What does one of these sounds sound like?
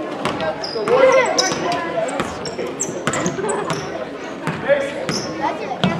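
Voices of players and spectators echo in a large gym.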